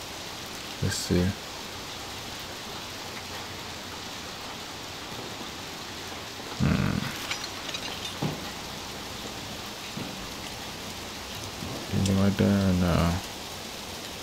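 A young man speaks in short, low bursts close to a microphone.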